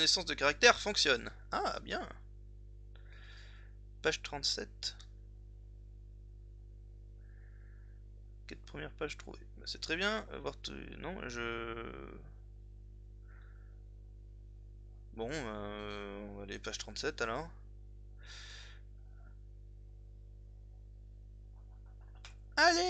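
A young man speaks calmly and close to a microphone, pausing between phrases.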